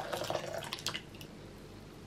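Liquid pours into a glass bowl.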